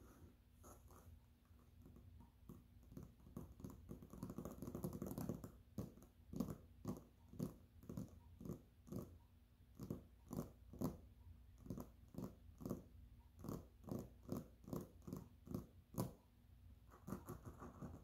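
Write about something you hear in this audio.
Fingernails tap rhythmically on a glass bowl, close up.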